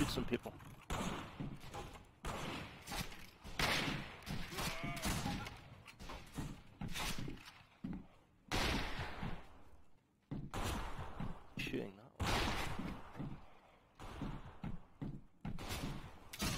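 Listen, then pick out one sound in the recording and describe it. Rifle shots boom loudly, each followed by a ringing echo.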